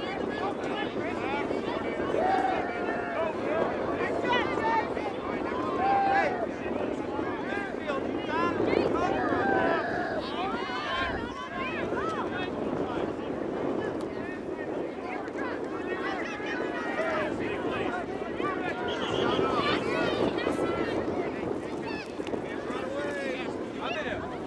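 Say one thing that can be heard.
A crowd of spectators chatter and shout from the sidelines outdoors.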